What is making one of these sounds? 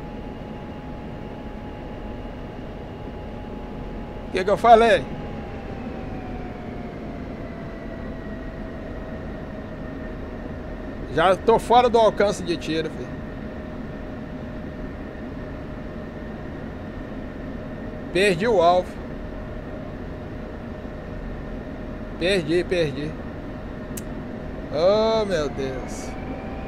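A jet fighter's engine whines from inside the cockpit, dipping a little in pitch and then holding.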